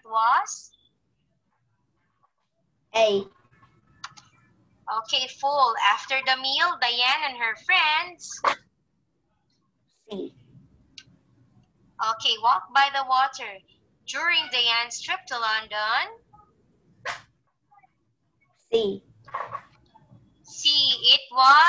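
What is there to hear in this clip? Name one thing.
A young woman speaks calmly and clearly through a microphone in an online call.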